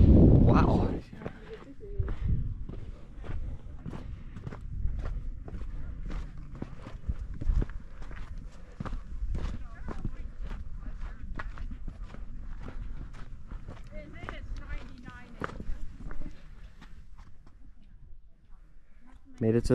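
Footsteps crunch on sandy gravel at a steady pace.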